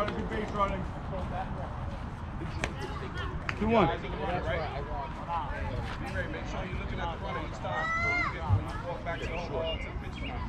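Children and adults call out and cheer across an open field.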